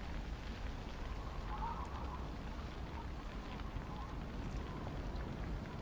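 Burning debris crackles and pops.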